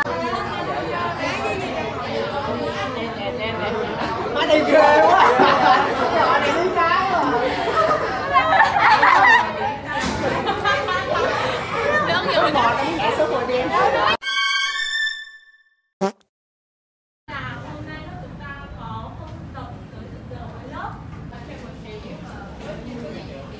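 Many young people talk loudly all around.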